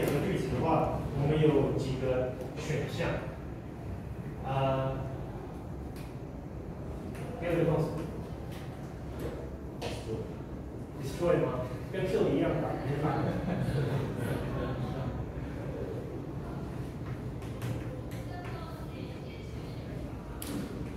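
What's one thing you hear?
A man lectures with animation in a room with a slight echo.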